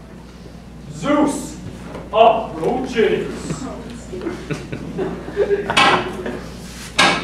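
Audience members talk among themselves.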